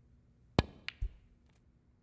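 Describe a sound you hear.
Snooker balls click together.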